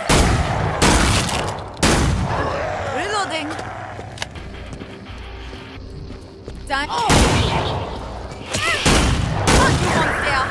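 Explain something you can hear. A rifle fires loud booming shots with a ringing echo.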